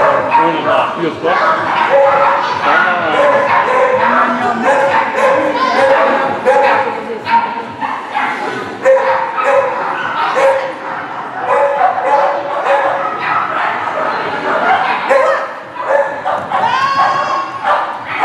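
A woman calls out commands to a dog with excitement in a large echoing hall.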